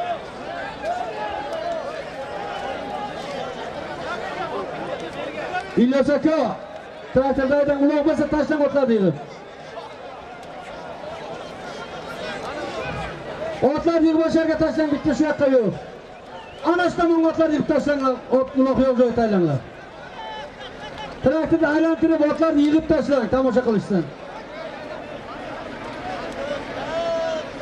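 A large outdoor crowd of men murmurs and shouts.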